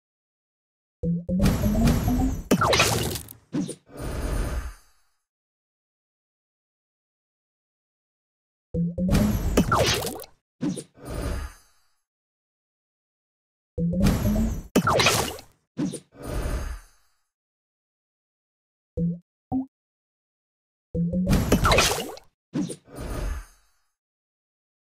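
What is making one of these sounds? Cheerful game sound effects chime and pop in short bursts as tiles match.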